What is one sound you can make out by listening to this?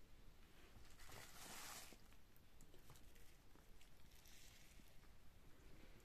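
A plastic sheet rustles and crinkles as wet fish are handled.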